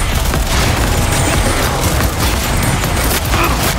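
A pistol fires in rapid shots.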